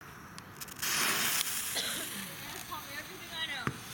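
A fuse sizzles as it is lit.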